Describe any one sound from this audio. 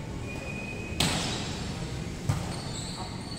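A volleyball is struck by hand with a sharp smack that echoes in a large hall.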